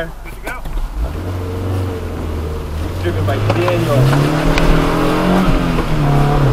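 A car engine revs and rises in pitch as the car speeds up.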